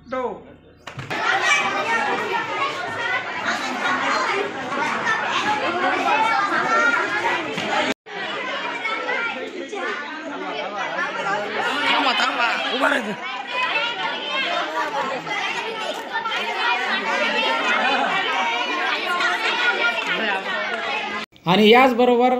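Children and adults chatter noisily in a crowd.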